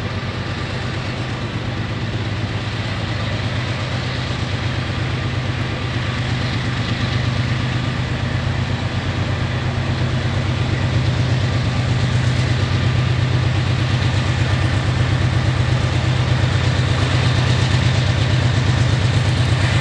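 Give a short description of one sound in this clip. A diesel locomotive engine rumbles in the distance, slowly growing louder.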